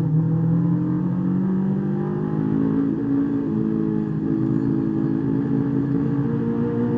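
A car engine roars loudly from inside the cabin, its pitch shifting as the car speeds along.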